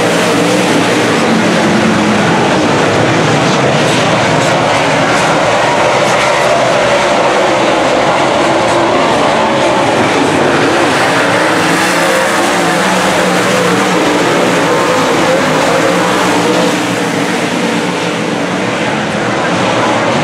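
Engines rise and fall in pitch as cars pass close by.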